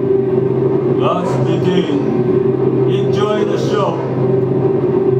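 A person sings briefly into a close microphone.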